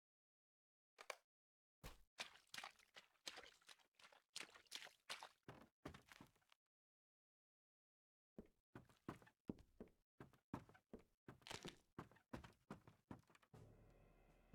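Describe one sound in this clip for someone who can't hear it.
Footsteps tap quickly on stone steps.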